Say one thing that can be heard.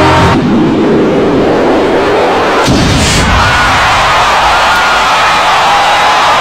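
A huge stadium crowd cheers and roars loudly.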